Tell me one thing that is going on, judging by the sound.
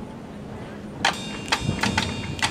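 A marching band's drums and cymbals strike up sharply.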